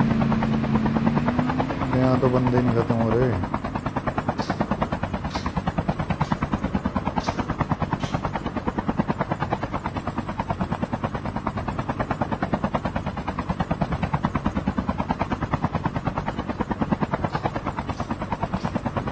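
A helicopter's rotor thumps rapidly and steadily, close by.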